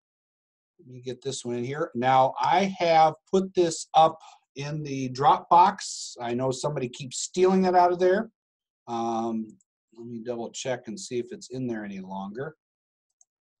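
A middle-aged man talks calmly into a close microphone.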